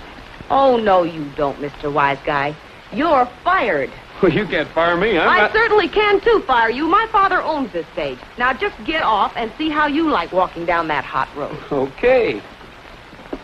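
A man talks calmly, close by, through an old muffled recording.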